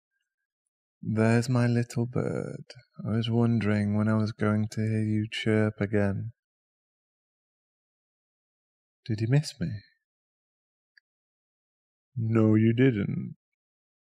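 A young man speaks softly and closely into a microphone, in short bursts with pauses.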